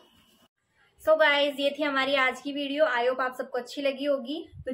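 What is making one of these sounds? A young woman speaks with animation, close by.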